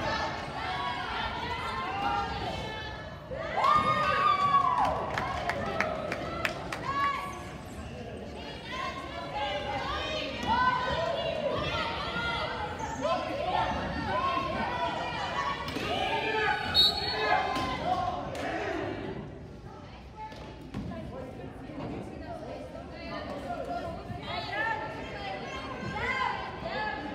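Players shout and call out across a large echoing gym.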